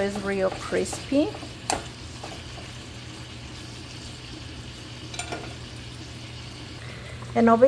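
Bacon sizzles in a hot pan.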